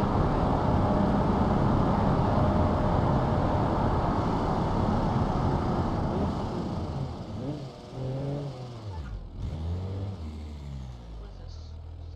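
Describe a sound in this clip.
A car engine roars as a car speeds along, then slows down.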